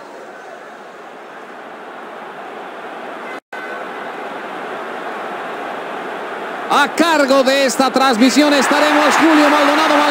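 A large stadium crowd roars steadily and grows louder.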